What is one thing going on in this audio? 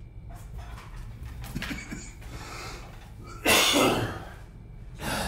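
A chair creaks and rustles as a man stands up.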